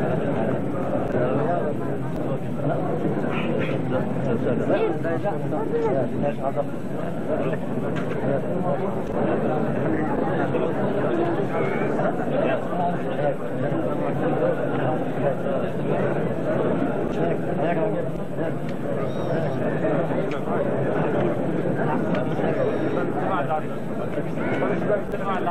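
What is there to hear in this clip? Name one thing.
A crowd of men chatter and greet each other close by.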